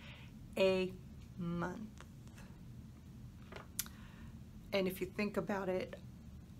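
An older woman speaks calmly and close to a microphone, in short phrases with pauses.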